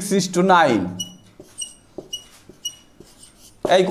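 A marker squeaks in short strokes on a whiteboard.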